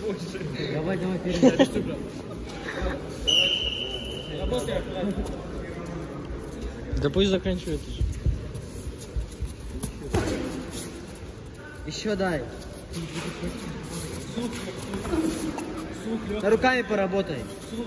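Men shout instructions from the side of the mat in a large echoing hall.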